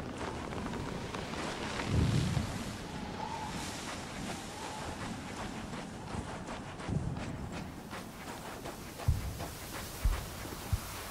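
Heavy boots crunch steadily on sand.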